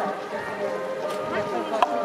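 Water pours from a jug into a bottle.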